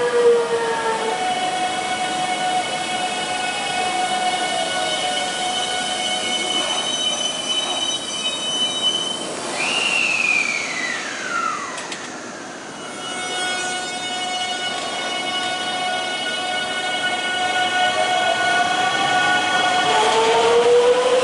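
An electric train hums with a steady high whine.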